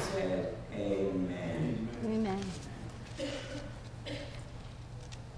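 A woman reads aloud calmly into a microphone.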